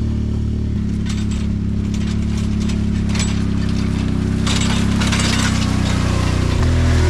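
Leafy plants rustle and swish against a vehicle.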